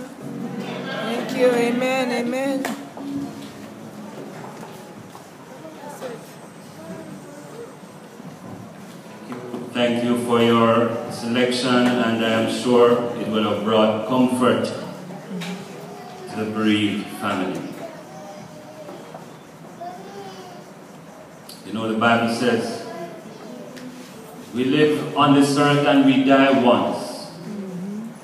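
A man preaches loudly through a microphone and loudspeakers in an echoing hall.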